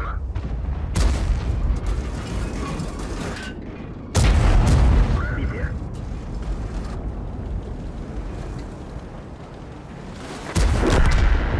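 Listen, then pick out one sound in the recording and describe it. A heavy cannon fires with a loud boom.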